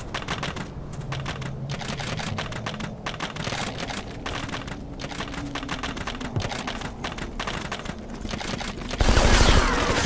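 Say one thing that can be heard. Footsteps crunch quickly on dirt and gravel.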